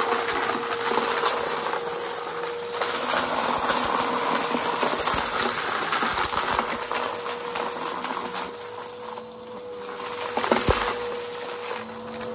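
A vacuum cleaner runs with a steady whine close by.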